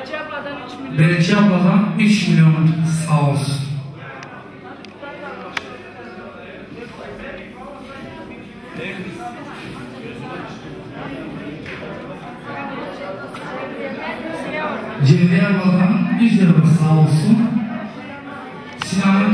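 A crowd of men and women chatters and talks in a large echoing hall.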